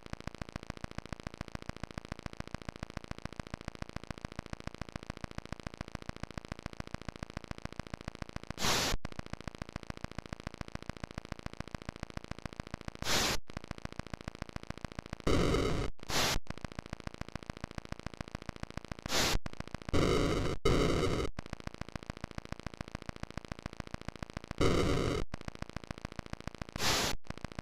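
A helicopter rotor chugs in a fast, steady electronic beat.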